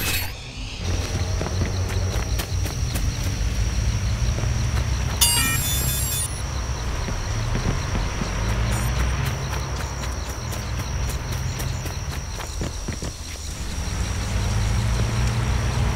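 Footsteps run over grass and pavement.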